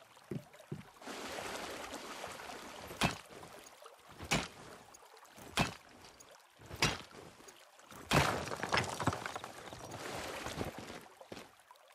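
Water splashes as someone wades through shallow water.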